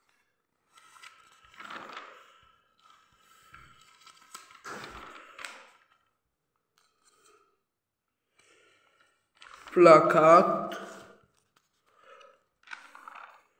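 Magazine pages rustle and crinkle as they are turned by hand.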